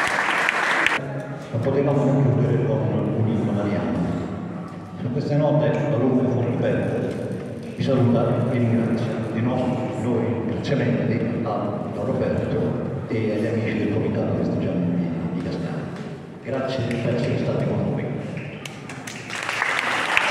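An elderly man sings solo through a microphone.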